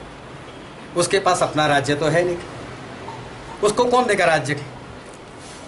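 A middle-aged man speaks calmly close by, in short bursts.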